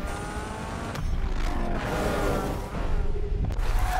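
Tyres screech on tarmac.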